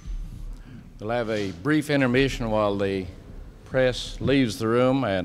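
A man speaks calmly through a loudspeaker in an echoing hall.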